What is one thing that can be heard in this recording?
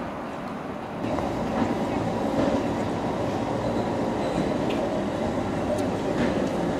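Quiet street traffic hums outdoors at night.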